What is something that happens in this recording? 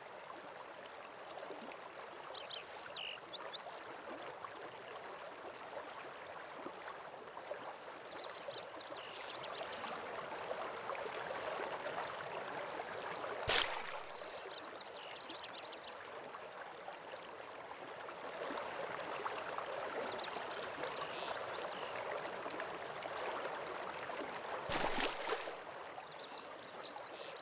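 A waterfall roars steadily in the distance.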